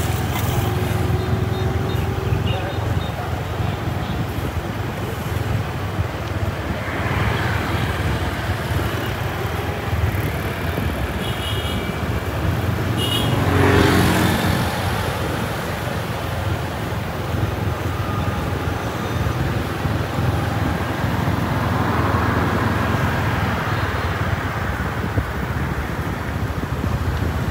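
Traffic hums steadily along a street outdoors.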